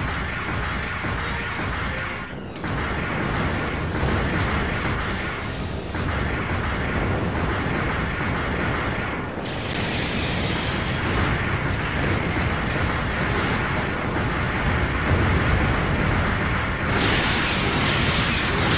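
Heavy guns fire in rapid bursts.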